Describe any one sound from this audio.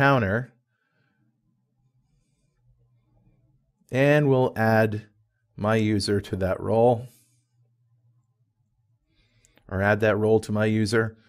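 A man speaks calmly and closely into a microphone, in short phrases with pauses.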